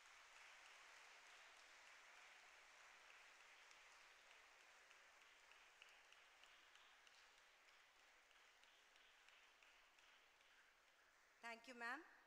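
An audience applauds, the clapping slowly fading.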